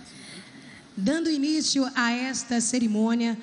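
A woman speaks loudly through a loudspeaker.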